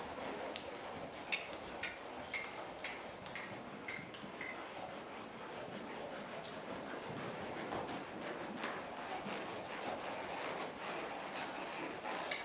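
Hooves thud steadily on soft dirt as a horse trots.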